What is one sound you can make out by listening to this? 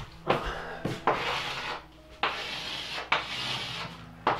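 Chalk scrapes across a blackboard in long strokes.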